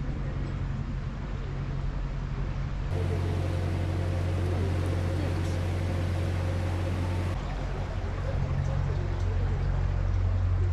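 A boat engine chugs steadily with a low hum.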